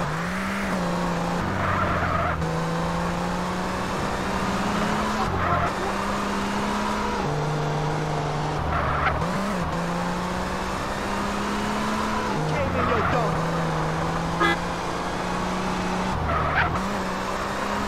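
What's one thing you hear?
A car engine hums steadily and shifts pitch as it accelerates and changes gear.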